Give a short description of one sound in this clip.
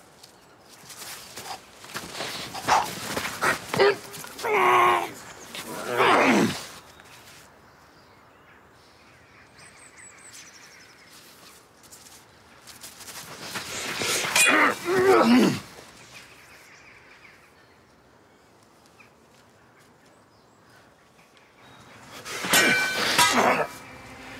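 Swords swish through the air.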